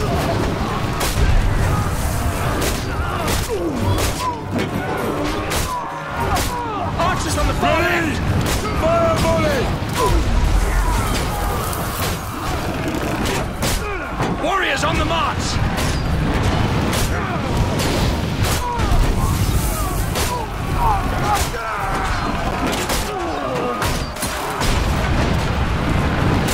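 Men scream and shout in battle.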